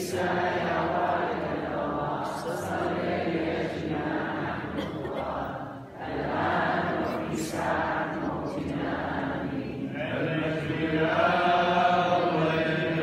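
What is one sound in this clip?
A congregation sings a hymn together in a large, echoing hall.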